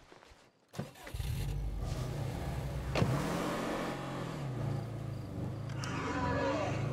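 A car engine starts and rumbles steadily.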